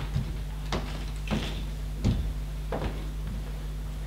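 Footsteps knock on a wooden stage.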